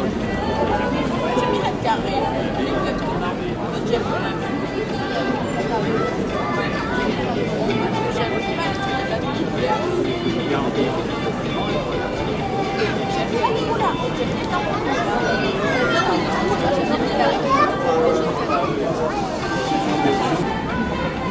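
A large crowd of adults and children chatters outdoors all around.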